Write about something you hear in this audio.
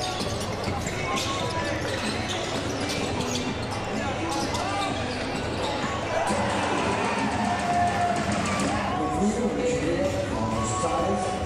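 Basketball shoes squeak sharply on a hardwood court.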